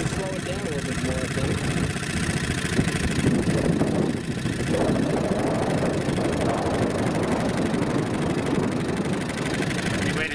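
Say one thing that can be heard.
A small outboard motor runs steadily with a loud, rapid buzz.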